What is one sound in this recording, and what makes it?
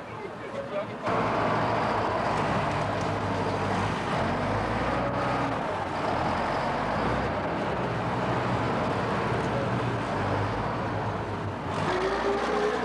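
A diesel motor grader's engine rumbles as it drives by.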